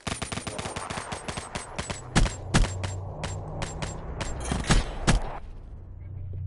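Rapid gunfire rattles in fast bursts.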